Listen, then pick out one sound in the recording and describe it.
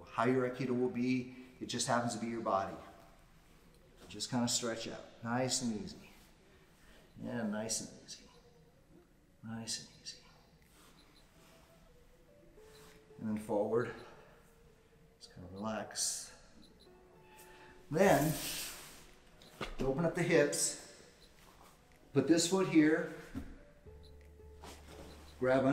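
An older man talks calmly in phrases, in a room that echoes a little.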